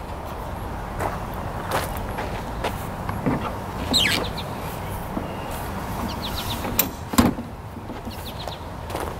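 A trolling motor mount clicks and clunks as it is handled.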